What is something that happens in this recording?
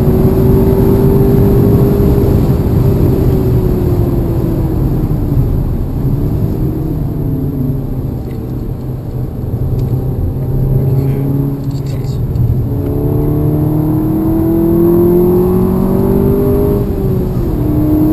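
A car engine revs up and down, rising and falling in pitch.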